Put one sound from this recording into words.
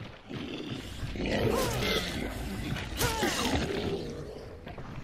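A monster snarls and growls up close.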